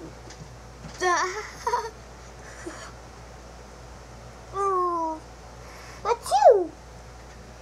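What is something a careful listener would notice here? A young boy speaks briefly close by.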